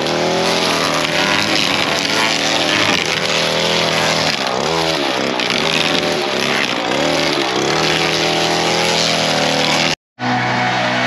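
A string trimmer whines loudly, its engine pitch rising and falling as it cuts grass.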